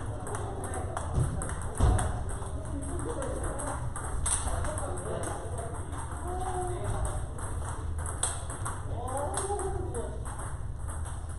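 Table tennis balls click off paddles and bounce on tables in a large echoing hall.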